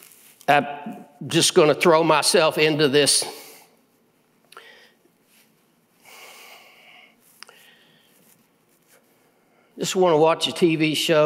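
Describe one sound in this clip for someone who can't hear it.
A middle-aged man speaks with animation through a microphone in a large hall, pausing between phrases.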